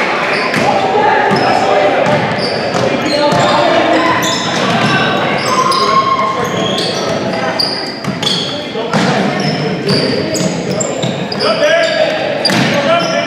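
Young boys shout to each other across an echoing gym.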